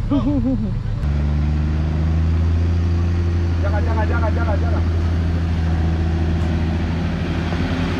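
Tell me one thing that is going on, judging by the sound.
A four-wheel-drive engine drones steadily.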